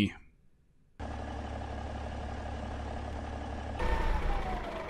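A truck engine idles with a steady low hum.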